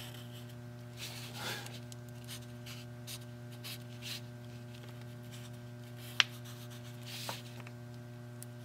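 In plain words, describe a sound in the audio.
A marker squeaks and scratches on paper.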